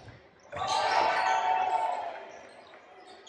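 A crowd cheers in a large echoing gym.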